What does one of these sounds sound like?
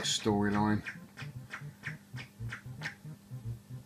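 Short electronic blips repeat from an arcade game.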